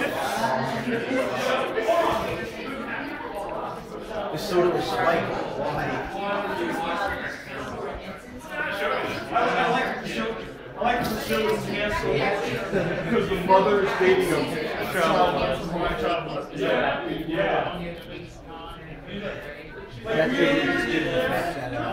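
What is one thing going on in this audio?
A crowd of men and women chat nearby indoors.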